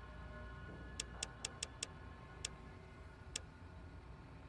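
Soft menu clicks tick a few times.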